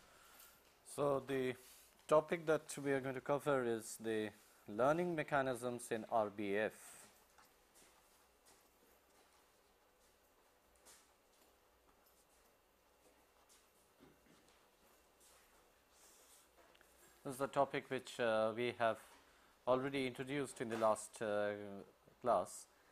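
A middle-aged man speaks calmly and steadily into a close microphone, as if lecturing.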